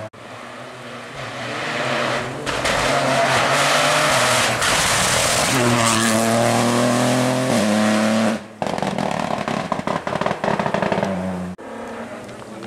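A rally car engine roars close by, revving hard and shifting gears as the car speeds past.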